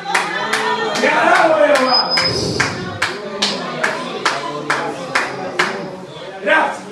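A man sings loudly into a microphone, heard through loudspeakers.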